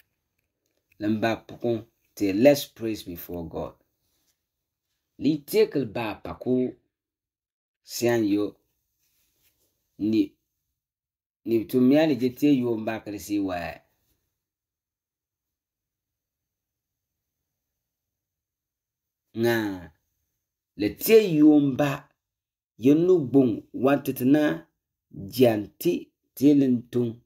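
A man speaks calmly into a microphone, pausing between phrases.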